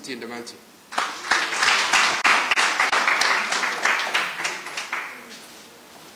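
An audience applauds.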